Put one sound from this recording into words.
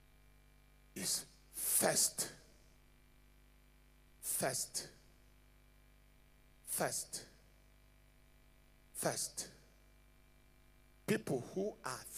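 A man preaches forcefully into a microphone in short, emphatic phrases with pauses between them.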